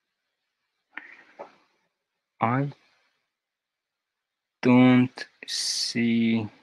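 A young man speaks in short bursts into a headset microphone, heard close.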